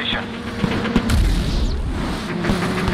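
A car crashes with heavy thuds.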